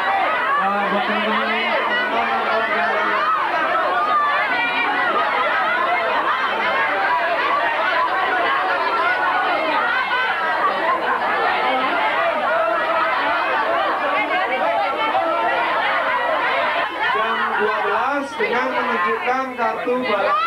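A large crowd of young people chatters and screams excitedly all around.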